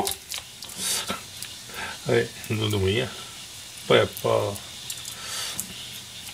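Fingers peel a garlic clove with a faint papery rustle.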